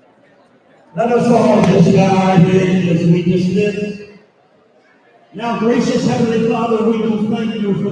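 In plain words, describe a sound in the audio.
An elderly man speaks loudly through a microphone and loudspeakers in an echoing hall.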